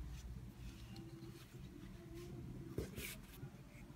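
A small plastic object knocks softly on a table.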